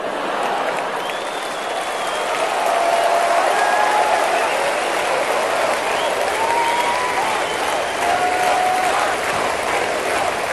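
A large crowd whistles and shouts.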